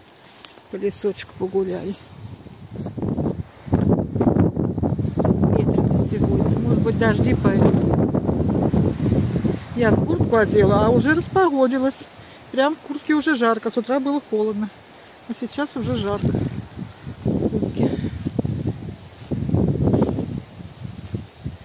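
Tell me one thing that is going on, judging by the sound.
Wind gusts outdoors, rustling through grass and pine branches.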